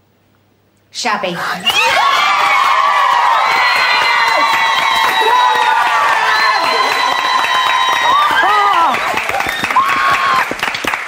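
Young women scream and cheer excitedly.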